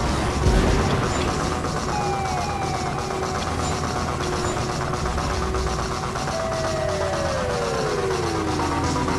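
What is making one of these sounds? A racing vehicle's engine drones steadily at speed.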